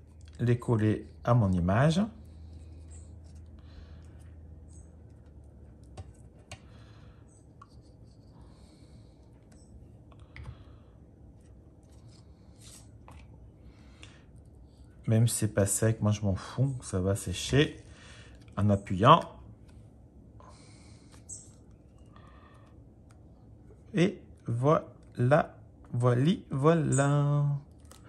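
Hands handle and press pieces of card stock together.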